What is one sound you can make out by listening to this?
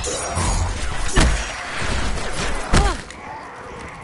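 A blade swings and strikes with a heavy whoosh.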